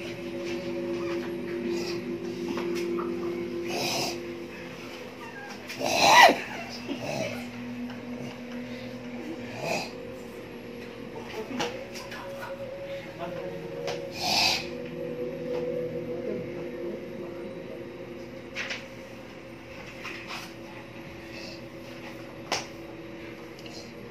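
Bare feet thump and shuffle on a hard floor.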